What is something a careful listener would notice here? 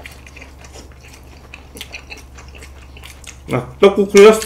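A young man chews food close to a microphone.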